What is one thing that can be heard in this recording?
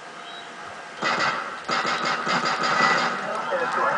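Gunshots crack in rapid bursts from a video game's loudspeaker.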